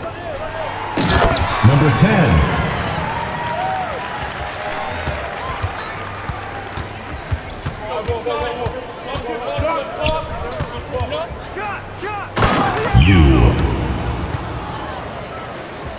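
A crowd in a large arena cheers loudly.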